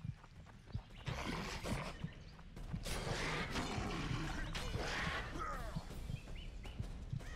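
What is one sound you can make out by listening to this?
Swords clash in a fight.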